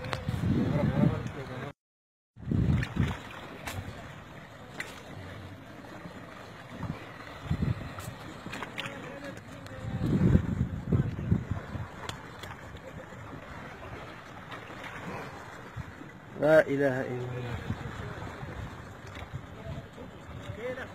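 Water laps and splashes against a boat.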